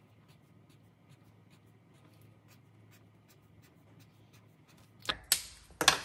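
A felt marker scratches and taps quickly on paper.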